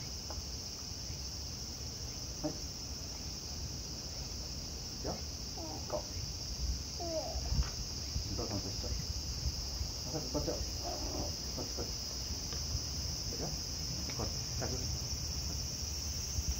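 A man speaks softly to a small child.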